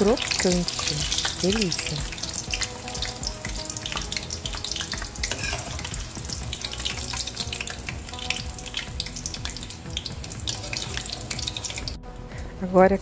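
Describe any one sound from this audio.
Hot oil sizzles and crackles steadily.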